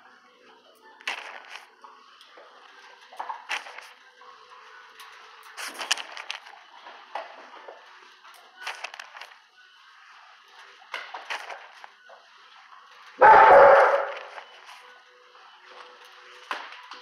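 A dog's claws click and scrape on a hard floor close by.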